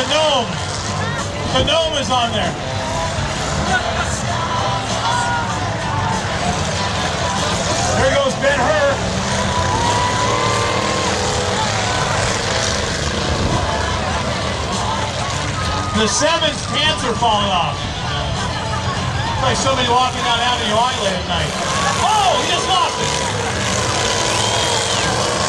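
Cars towing trailers roar around a dirt track outdoors.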